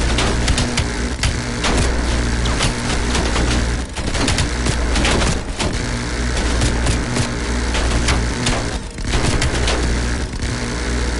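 A heavy machine gun fires in long, rapid bursts.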